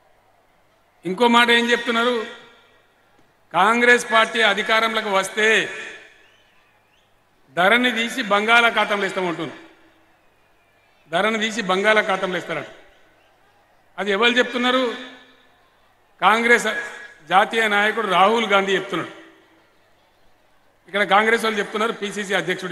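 An elderly man gives a speech loudly into a microphone, in forceful bursts broken by pauses.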